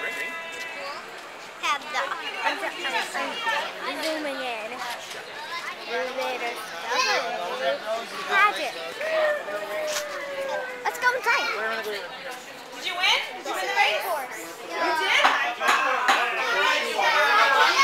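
Women and children chatter nearby outdoors.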